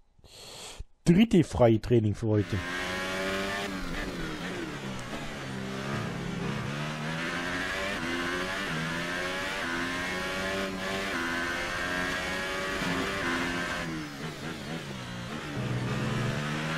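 A racing car engine screams at high revs, rising and dropping in pitch as it shifts gears.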